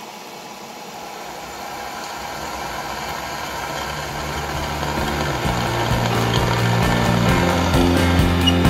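A drill bit grinds into metal, growing louder.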